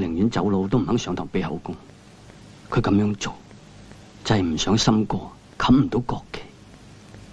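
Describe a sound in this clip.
A man speaks weakly and slowly, close by.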